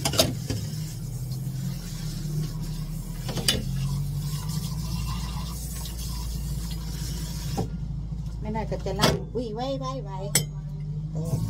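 Dishes knock and clatter.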